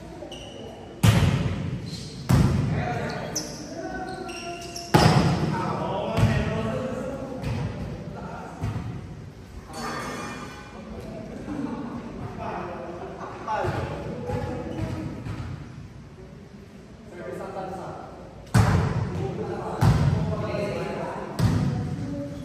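A volleyball is struck with sharp smacks that echo in a large hall.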